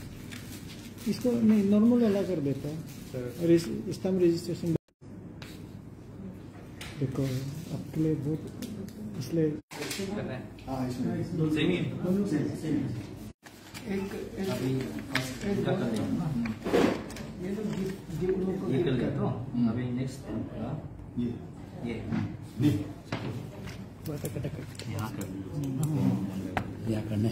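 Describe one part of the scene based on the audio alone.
Paper rustles as a page is handled.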